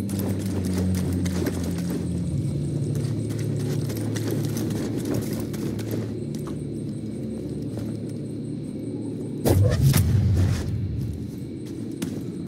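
Footsteps crunch on dirt and stone.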